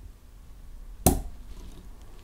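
A cork pops out of a bottle.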